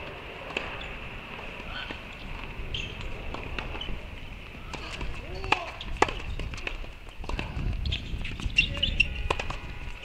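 A tennis ball pops sharply off a racket.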